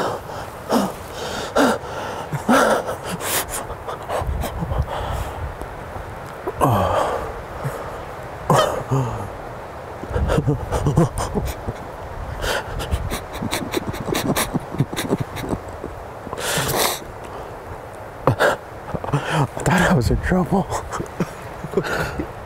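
A man whispers quietly close by.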